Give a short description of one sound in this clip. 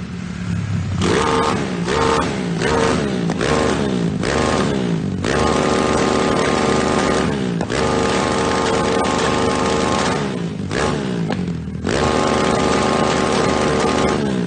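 A motorcycle exhaust roars loudly, rising and falling with the revs.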